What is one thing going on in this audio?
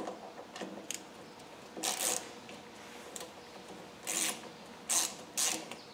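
Metal tools click and tap against metal parts.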